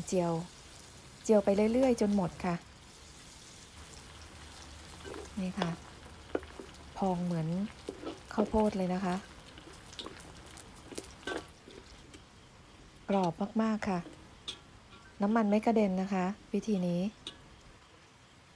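Hot oil sizzles and bubbles steadily.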